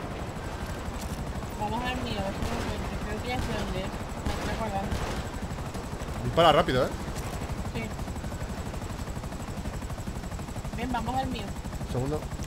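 A helicopter's rotor whirs and chops steadily close by.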